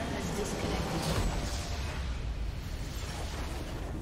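A nexus explodes with a deep rumbling blast.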